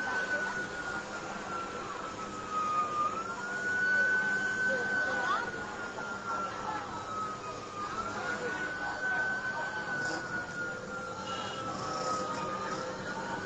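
A siren wails, rising and falling slowly.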